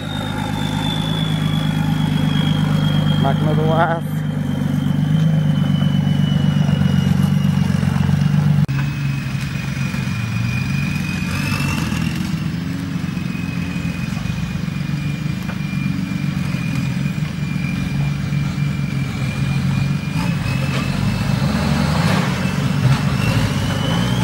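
An off-road vehicle's engine rumbles low as it crawls slowly over rough ground.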